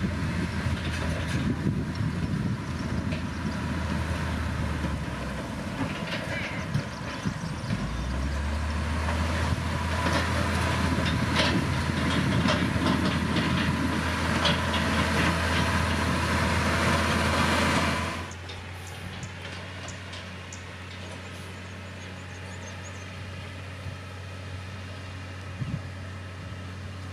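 A heavy diesel engine rumbles steadily close by.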